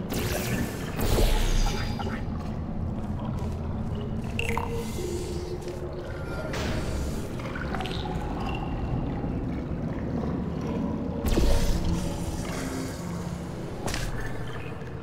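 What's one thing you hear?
A sci-fi gun fires with sharp electric zaps.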